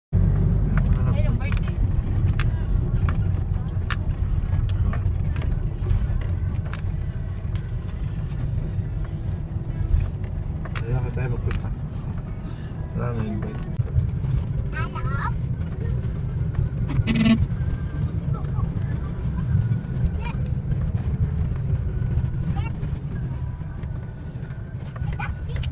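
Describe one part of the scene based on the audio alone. A car engine rumbles low and steady from inside the cabin as the car drives along.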